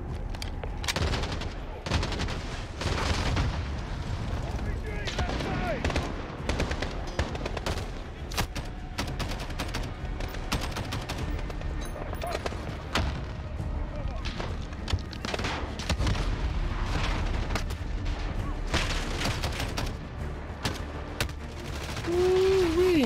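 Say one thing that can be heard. Rapid gunfire crackles in bursts.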